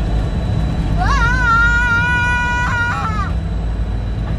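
A young boy sings a long, high, wavering note close by.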